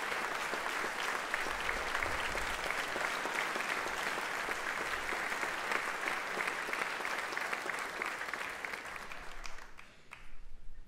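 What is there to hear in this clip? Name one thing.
A large audience claps loudly in an echoing hall.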